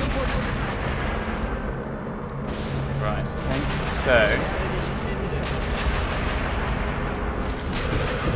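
Footsteps scuff on hard ground.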